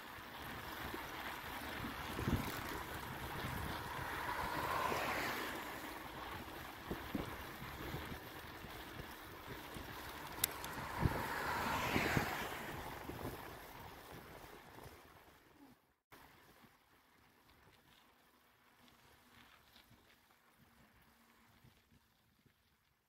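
Road noise and wind rush steadily from a moving vehicle.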